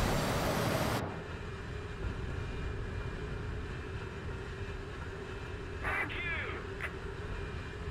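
A rocket fires with a sharp whoosh.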